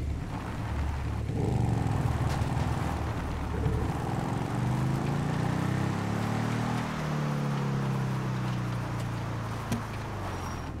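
A motorcycle engine revs and rumbles.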